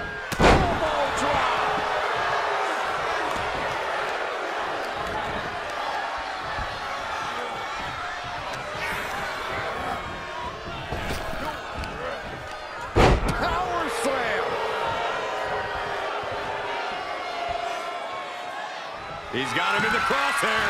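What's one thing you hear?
A large crowd cheers and roars loudly throughout.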